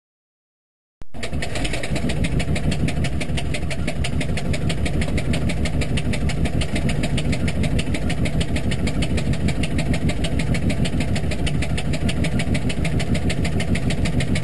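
A small propeller plane's engine runs loudly and roughly, close by.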